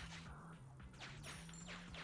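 Coins chime and jingle in quick succession.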